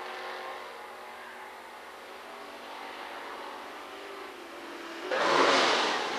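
Race car engines drone in the distance as cars speed down a track.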